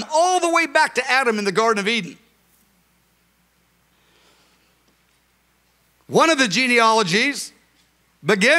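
A middle-aged man speaks with emphasis through a microphone in a large echoing hall.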